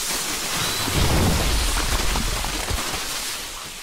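Heavy explosions thud and rumble.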